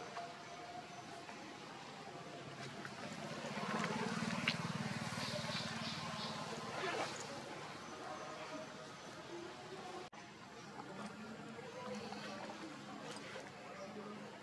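A baby monkey chews on food with soft smacking sounds.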